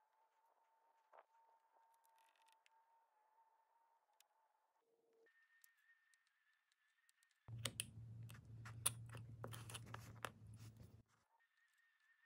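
A craft knife scrapes through thin paper.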